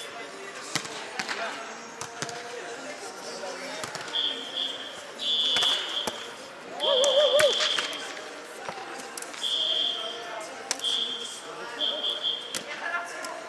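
A volleyball is struck with a dull slap in a large echoing hall.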